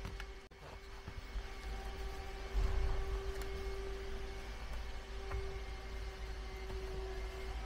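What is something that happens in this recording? A cloth rubs and squeaks against a leather seat.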